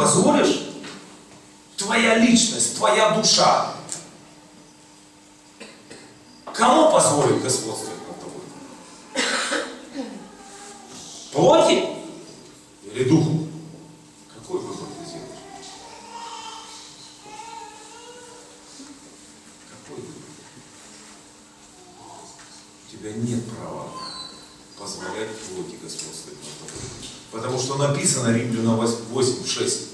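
An older man speaks with animation into a microphone in an echoing hall.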